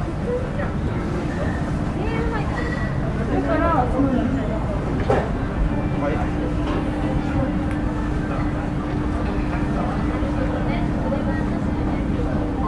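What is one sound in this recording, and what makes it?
Young men and women chat casually nearby.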